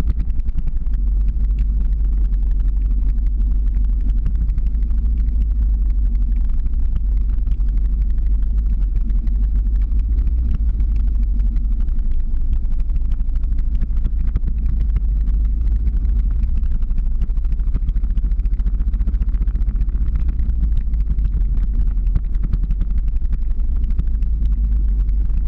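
Wheels roll steadily over rough asphalt.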